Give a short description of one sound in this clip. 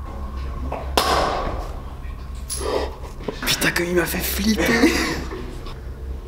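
A young man talks excitedly close up.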